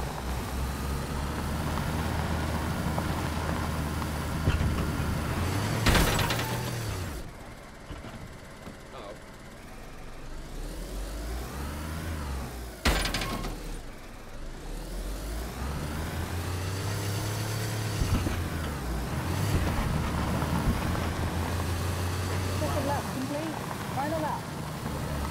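A small car's engine hums and revs as the car drives over rough ground.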